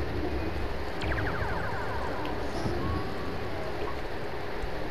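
A control panel beeps as buttons are pressed.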